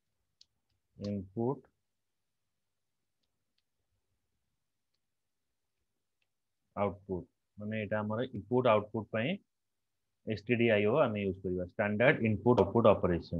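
A man speaks calmly into a microphone, explaining in short phrases with pauses.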